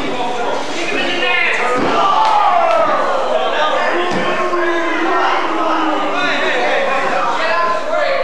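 Bodies thud onto a wrestling ring mat.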